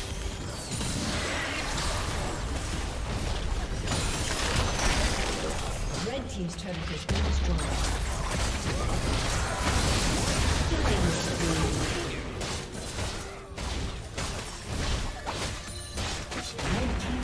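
Video game combat effects blast, clash and crackle throughout.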